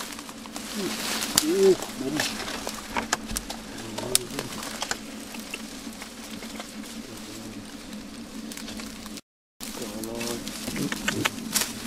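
A man rustles and pushes aside dry grass and leaves.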